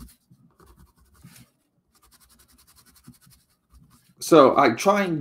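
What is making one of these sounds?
A marker pen scratches and squeaks across cardboard.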